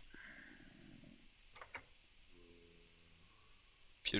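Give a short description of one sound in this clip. A wooden trapdoor clicks open.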